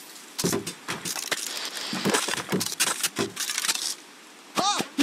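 Game sound effects of wooden and stone blocks crash and break apart.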